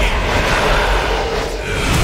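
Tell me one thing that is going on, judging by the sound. A magic spell crackles and bursts with a whoosh.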